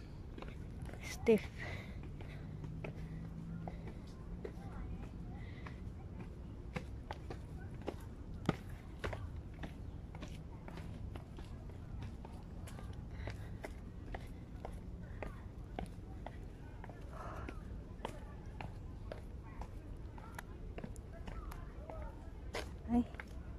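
Footsteps scuff on stone steps outdoors.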